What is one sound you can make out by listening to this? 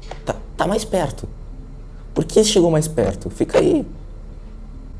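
A boy talks with animation close to a microphone.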